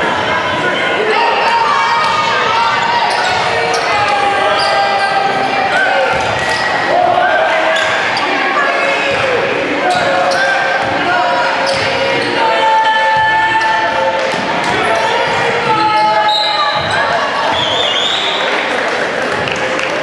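Spectators talk and call out in a large echoing gym.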